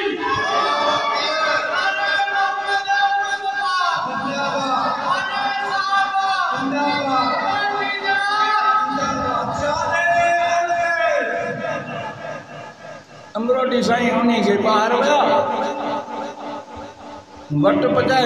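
An elderly man preaches with animation into a microphone, heard through a loudspeaker in an echoing hall.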